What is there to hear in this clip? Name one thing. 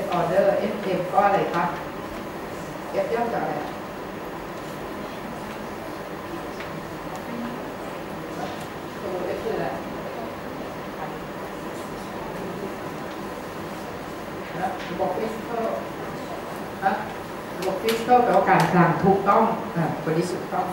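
A woman speaks through a microphone in a large room, pausing often.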